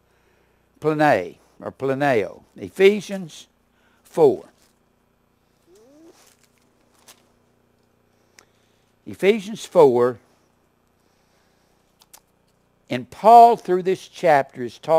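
An older man lectures calmly into a clip-on microphone, pausing between phrases.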